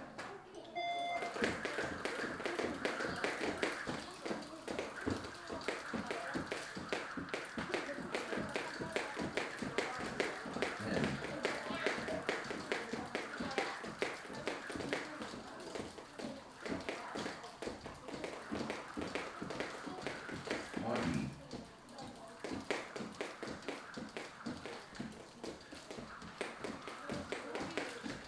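Two children's jump ropes whip and slap a padded floor in fast double-unders.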